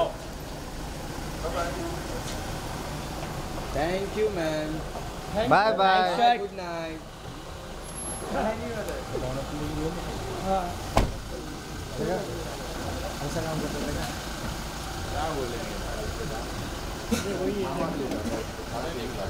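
Several men call out nearby outdoors.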